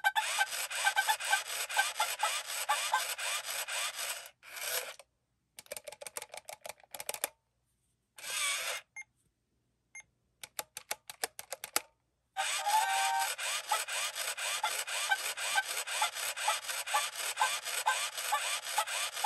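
A toy robot dog makes chirpy, clicking electronic sounds that stop and start.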